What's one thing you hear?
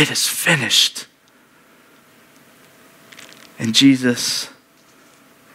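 A man speaks with emphasis through a microphone, in short bursts.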